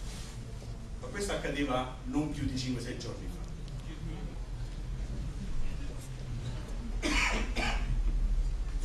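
A man speaks into a microphone over loudspeakers in a large hall.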